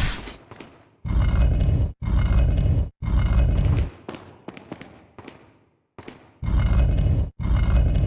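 A heavy stone block scrapes and grinds across the floor.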